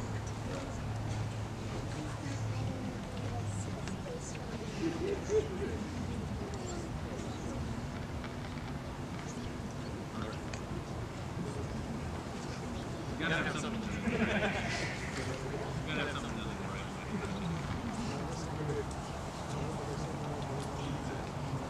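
A man speaks calmly at a distance outdoors.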